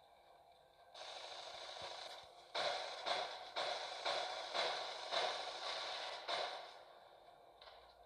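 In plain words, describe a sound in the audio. Energy weapons fire in rapid bursts.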